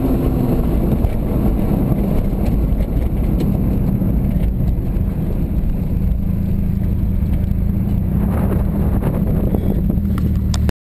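Tyres rumble over the road.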